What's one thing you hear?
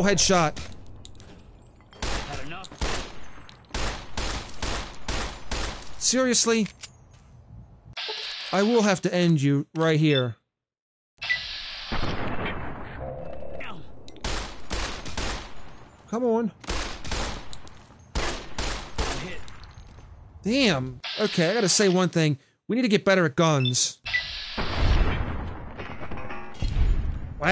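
Pistol shots ring out loudly, one after another.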